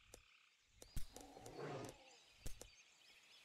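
A large beast snarls as it attacks.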